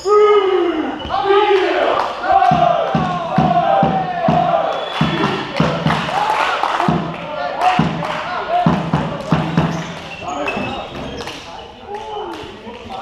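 Young men shout and call out loudly in a large echoing hall.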